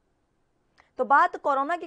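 A young woman reads out the news clearly into a microphone.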